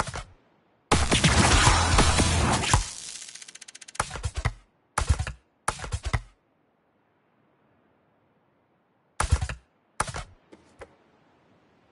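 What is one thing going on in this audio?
Short game menu sounds click and swoosh.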